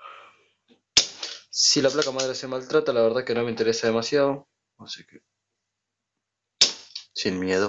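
A spring-loaded desoldering pump snaps with a sharp click.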